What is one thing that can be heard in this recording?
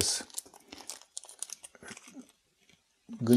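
Small plastic parts click softly in a man's hands.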